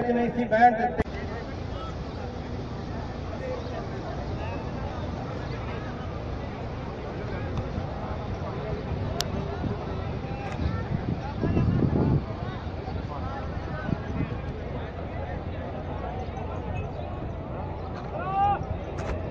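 A crowd murmurs outdoors in the distance.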